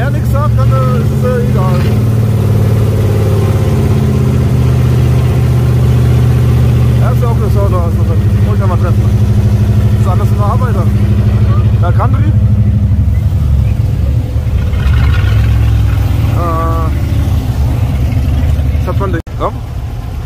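A car engine idles with a deep, steady rumble close by.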